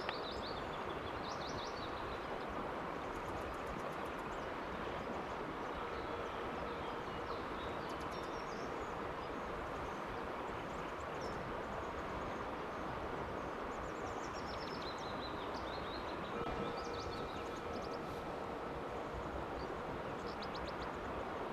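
A river flows and gurgles steadily over stones.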